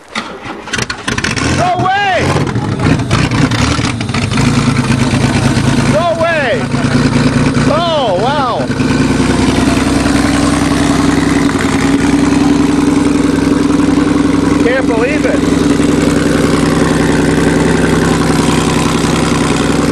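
A car engine starts up and idles with a steady rumble.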